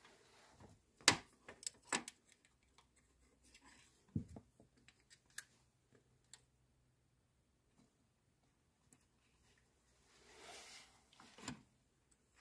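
Metal parts click and clink against each other.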